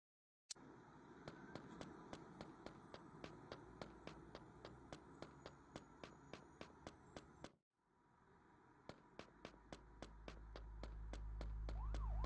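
Quick footsteps slap on pavement at a steady running pace.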